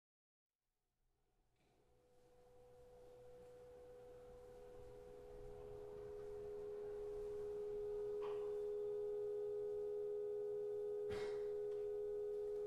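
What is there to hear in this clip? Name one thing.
A chamber ensemble plays a sustained, slowly swelling chord in a large room.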